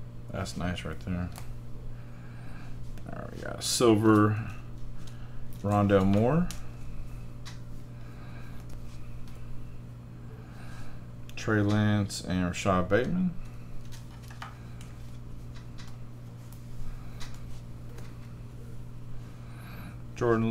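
Trading cards shuffle and flick softly.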